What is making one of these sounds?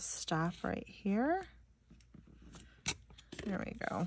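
A sticker peels off its backing.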